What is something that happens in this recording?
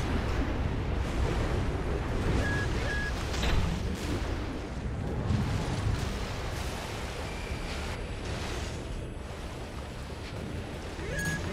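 A heavy mechanical engine roars steadily.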